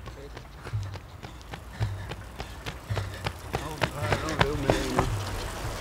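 Running footsteps slap on asphalt, coming closer.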